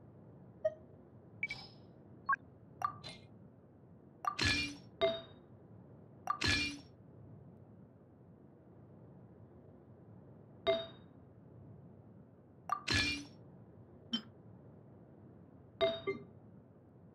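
Short, bright chimes ring out now and then, some with a whooshing shimmer.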